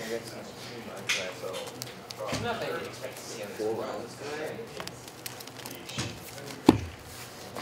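Playing cards riffle and shuffle close by.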